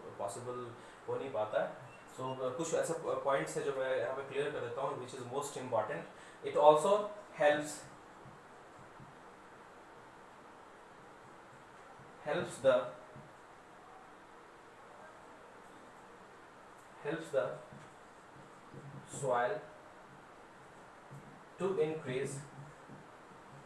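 A young man speaks calmly and explains, close by.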